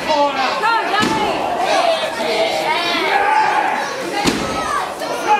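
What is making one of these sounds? A wrestler's strike slaps sharply on bare skin.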